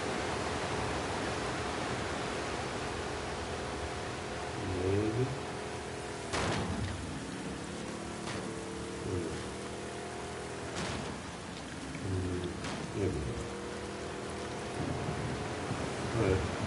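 Water splashes and churns behind a small boat.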